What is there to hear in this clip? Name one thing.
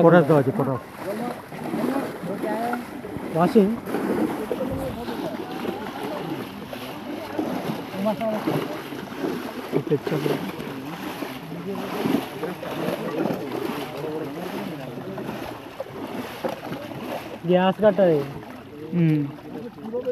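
Fish thrash and splash loudly in shallow water.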